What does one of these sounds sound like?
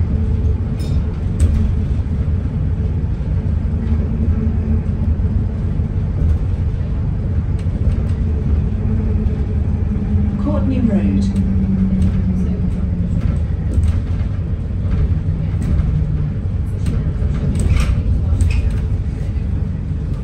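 A bus engine rumbles low and steady while the bus drives.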